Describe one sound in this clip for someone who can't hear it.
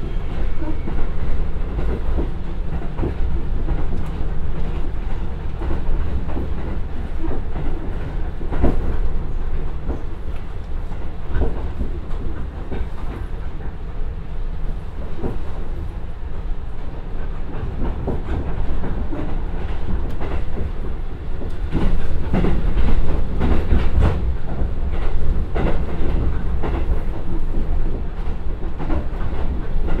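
A diesel railcar engine rumbles steadily.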